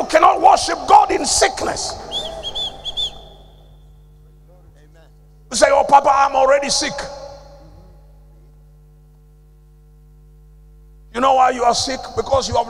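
An elderly man preaches loudly and with animation through a microphone, in short bursts with pauses.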